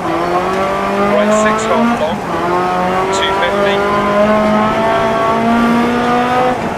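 A rally car engine revs hard, rising and dropping in pitch as gears shift.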